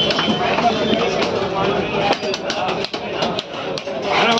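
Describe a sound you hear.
A cleaver chops through fish on a wooden block.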